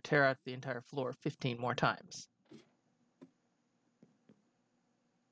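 Footsteps tap softly on a wooden ladder.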